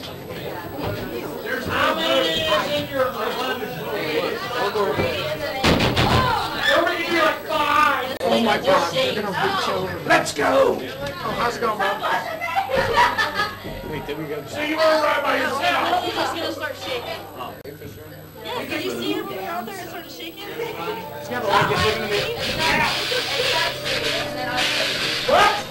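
Several young people talk excitedly over one another close by.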